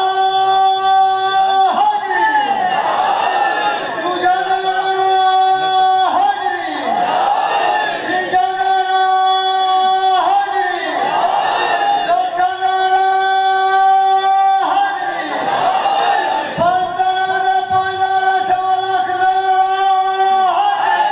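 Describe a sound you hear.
A young man chants a mournful lament loudly into a microphone, heard through loudspeakers.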